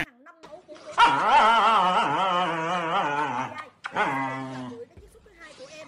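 A husky dog howls and yowls loudly, close by.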